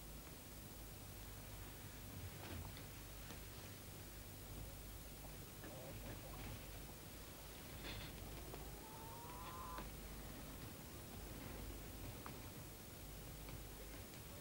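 A couple kisses softly and closely.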